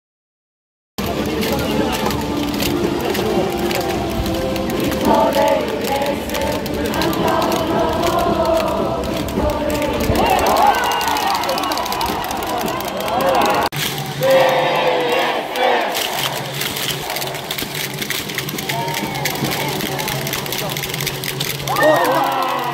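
A large stadium crowd cheers, chants and sings loudly all around, outdoors.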